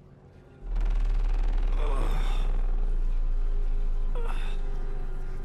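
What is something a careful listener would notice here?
A man groans and gasps in pain.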